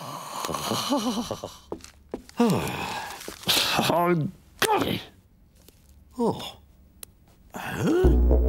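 A man mumbles and grunts in a nasal, squeaky voice.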